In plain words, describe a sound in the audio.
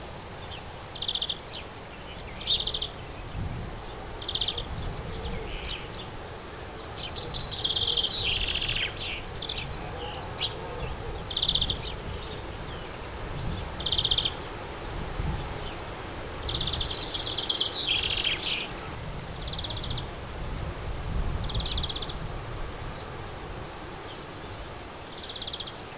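Small birds chirp and twitter nearby, with short high calls and trills.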